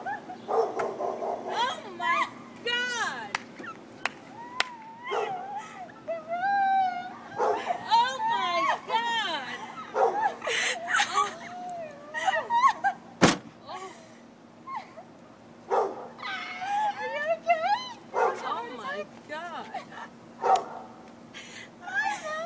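A woman shrieks and cries out with emotion close by.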